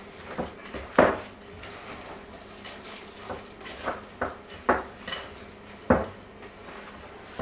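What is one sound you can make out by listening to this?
A spoon scrapes and knocks against a glass bowl while stirring a thick dough.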